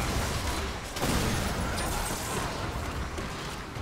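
A magic blast whooshes and crackles sharply.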